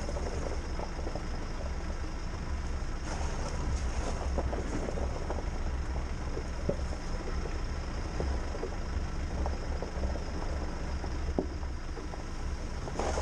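A vehicle engine rumbles low and steady while driving.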